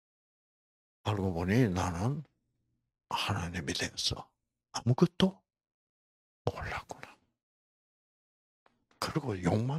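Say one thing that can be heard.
An elderly man speaks with animation into a microphone, in short bursts with pauses.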